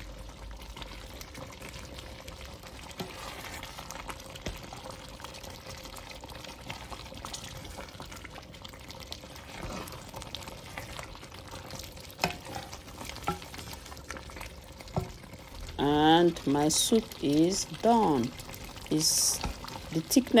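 A thick stew bubbles and simmers in a pot.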